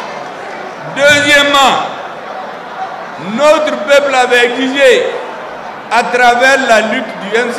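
A man speaks forcefully into a microphone over loudspeakers, in short bursts.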